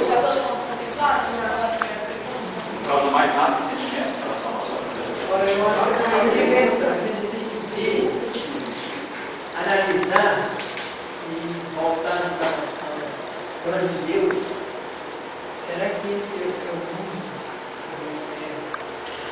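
An elderly man speaks calmly and nearby.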